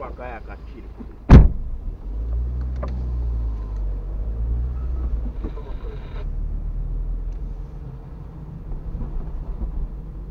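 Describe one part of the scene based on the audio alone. A car engine hums low from inside the car as it drives slowly.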